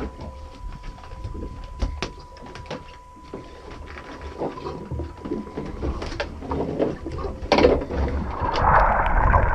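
Two men talk casually on a boat.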